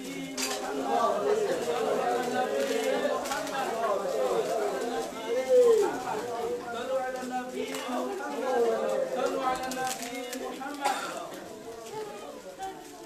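A group of men chant along together.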